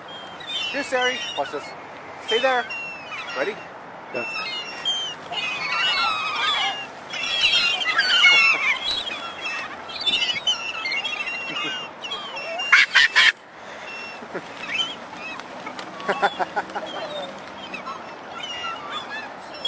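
Many wings flap as seagulls take off.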